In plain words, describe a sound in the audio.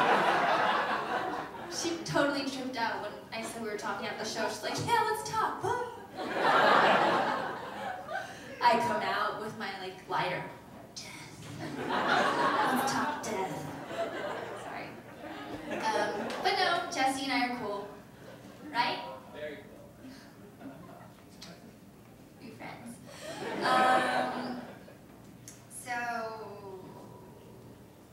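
A young woman talks into a microphone over loudspeakers.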